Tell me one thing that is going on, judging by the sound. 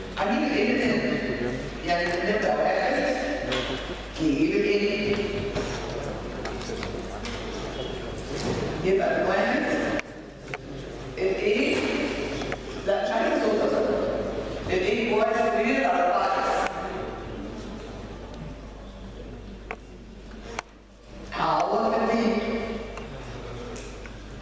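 A woman lectures calmly, close by.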